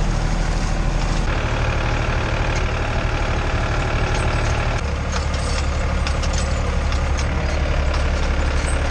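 A hay rake rattles and clatters behind the tractor.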